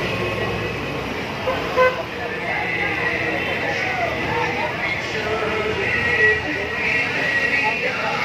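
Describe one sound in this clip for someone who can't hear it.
Motorbike engines drone as they pass close by.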